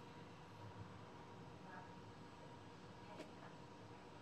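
Weight plates on a barbell clank as the bar is lifted from the floor.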